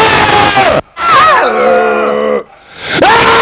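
A young man yells into a microphone.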